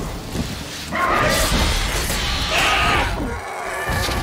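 A large beast screeches loudly.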